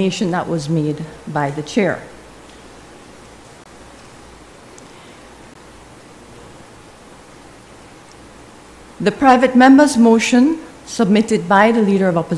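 A middle-aged woman speaks calmly into a microphone, pausing in between.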